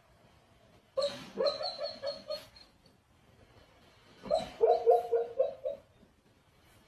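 A dog huffs and whines in short bursts.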